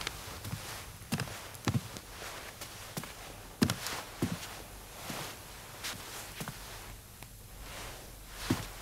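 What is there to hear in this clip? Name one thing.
Footsteps thud slowly and evenly.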